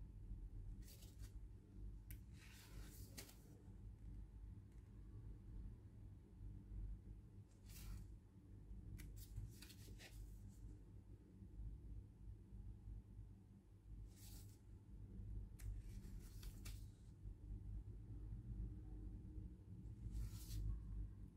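Paper pages of a booklet rustle as they are turned.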